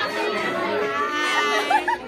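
A teenage girl talks and laughs close by.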